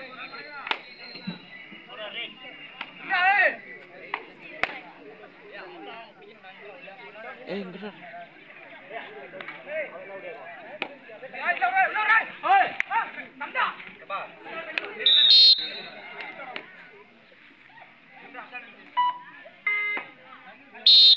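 A crowd of young men shouts and chatters outdoors.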